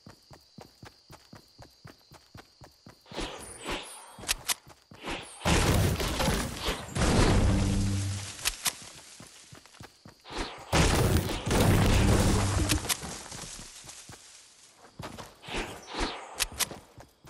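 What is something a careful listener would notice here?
A game character's footsteps crunch quickly through snow.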